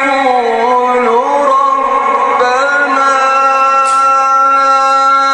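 An elderly man recites in a long, drawn-out melodic chant through a microphone, with echo in a large hall.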